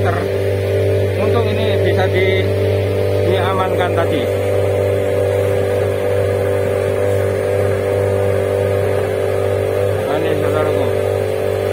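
A large diesel engine idles steadily nearby.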